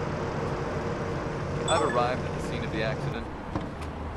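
A car engine hums as the car drives along.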